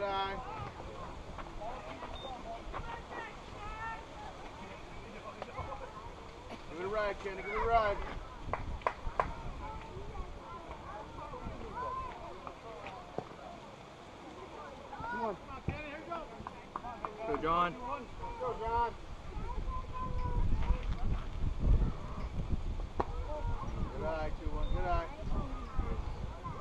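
Men and children call out and cheer from a distance outdoors.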